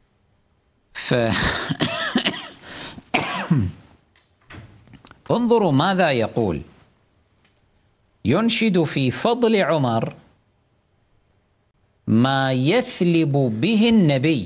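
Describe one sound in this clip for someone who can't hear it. A man speaks calmly into a close microphone, in bursts with pauses.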